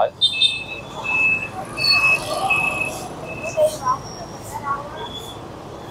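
Motorbikes pass by on a busy street.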